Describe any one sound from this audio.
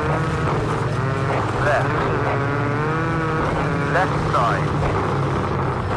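Tyres skid and crunch on loose gravel.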